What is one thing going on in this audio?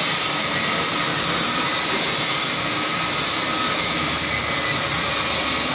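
A lathe runs with a steady loud whir.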